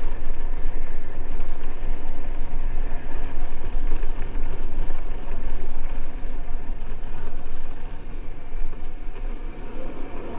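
Tyres rumble steadily over a brick road.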